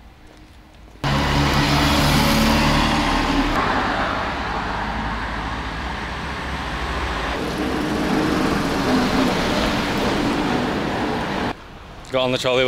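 Traffic roars past on a busy street.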